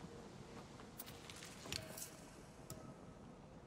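Soft interface clicks and chimes sound as a menu is switched.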